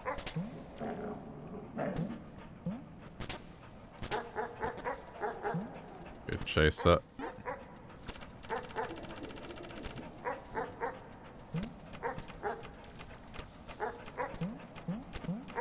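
Small paws patter softly on the ground.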